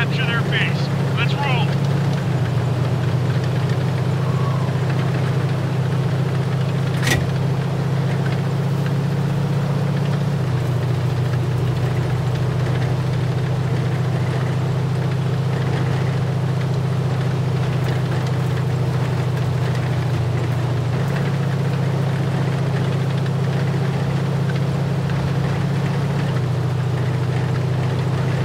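A heavy tank engine rumbles steadily, its pitch shifting as it drives.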